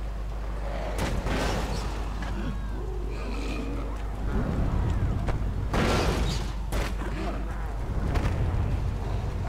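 Heavy impacts thud and crash.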